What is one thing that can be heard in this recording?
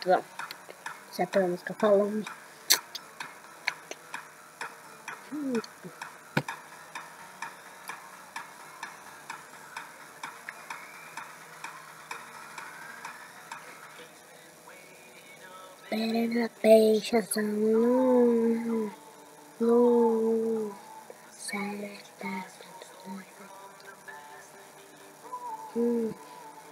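Music plays through small laptop speakers.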